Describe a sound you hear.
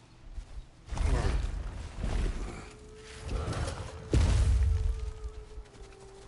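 A heavy body scrambles and climbs up a rock face with loud thuds.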